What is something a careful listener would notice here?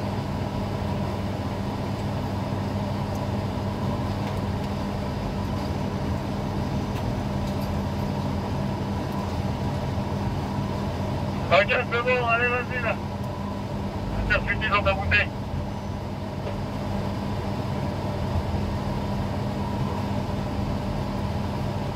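A crane's motor hums steadily close by.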